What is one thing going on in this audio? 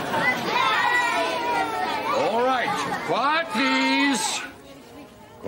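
Children chatter and call out excitedly close by.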